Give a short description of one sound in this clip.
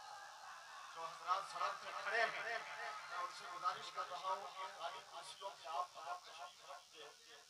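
A man chants rhythmically into a microphone over loudspeakers.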